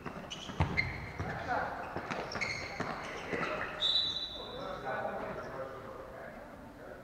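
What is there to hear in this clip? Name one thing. Players call out to each other from across a large echoing hall.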